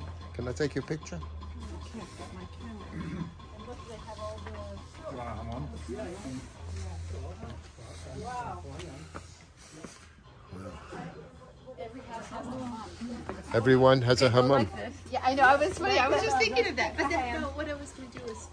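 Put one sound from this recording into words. Women talk and laugh with animation close by.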